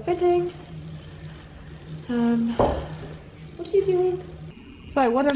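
A young woman speaks calmly and close by in short phrases.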